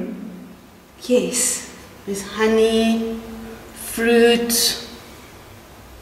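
A second woman answers with animation.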